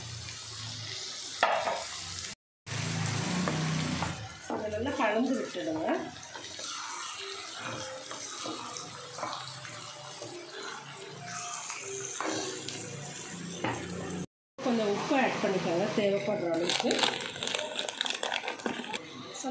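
Tomatoes sizzle in a hot pan.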